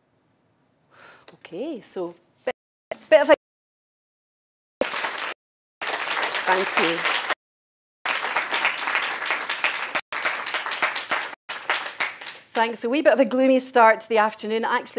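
A middle-aged woman speaks.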